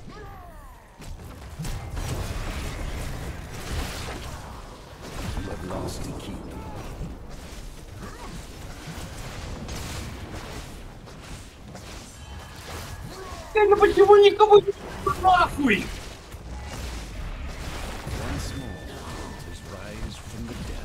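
Game spell effects and hits crackle and thump in a busy battle.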